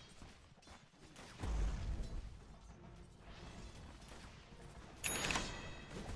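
Weapons clash and magic blasts burst in a fight.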